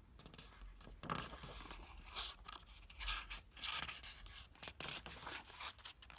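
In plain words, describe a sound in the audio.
Book pages flip over with a quick papery flutter.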